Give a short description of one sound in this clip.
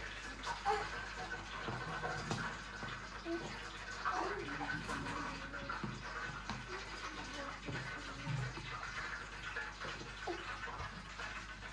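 A woman talks softly and warmly close by.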